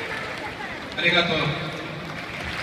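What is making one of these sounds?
A man speaks over the stadium loudspeakers, echoing.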